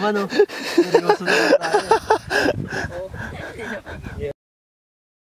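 A young man speaks playfully between laughs.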